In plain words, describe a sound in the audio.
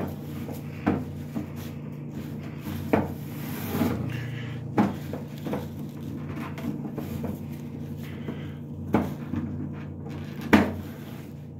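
Paper towels are pulled from a dispenser with a sharp rustling tug, again and again.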